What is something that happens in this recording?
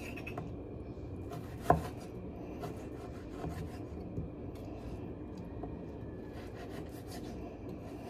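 A knife taps and chops on a wooden board.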